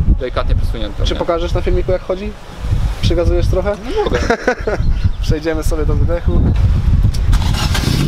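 A man talks calmly and close by, outdoors.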